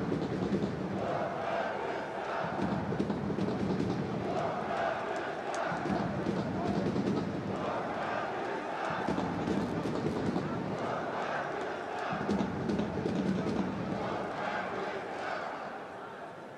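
A large stadium crowd chants in a loud rhythmic swell.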